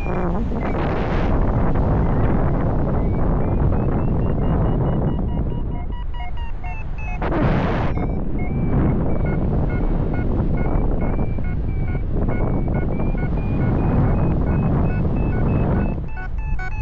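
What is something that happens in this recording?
Wind rushes and buffets loudly against the microphone.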